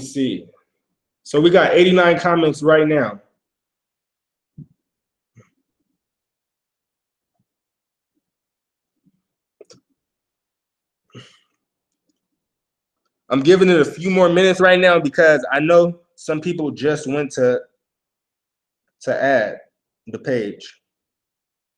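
A young man talks calmly and close into a microphone, in short bursts with pauses.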